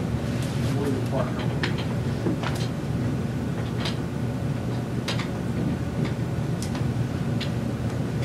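A man speaks calmly into a microphone, heard through loudspeakers in a large room.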